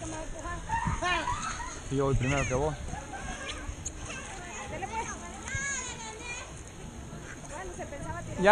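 Water splashes gently in a pool.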